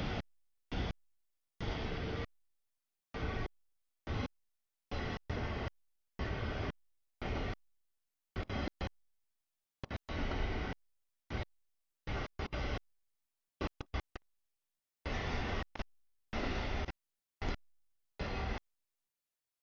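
A freight train rumbles and clatters past close by, in choppy bursts.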